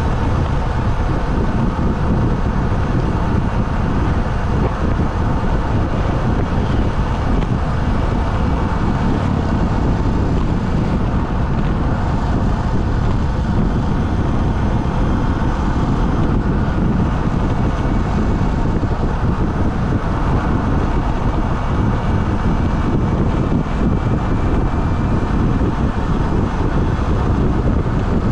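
A motorcycle engine hums steadily while riding along a road.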